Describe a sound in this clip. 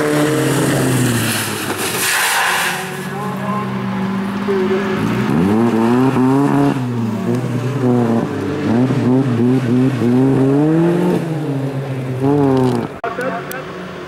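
A car engine revs hard and roars up and down close by.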